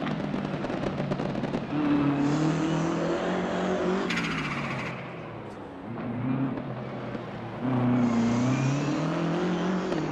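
A racing car's engine roars loudly, rising and falling in pitch with each gear change.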